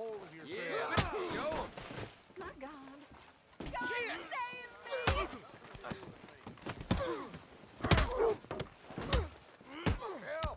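Fists thud heavily in a brawl.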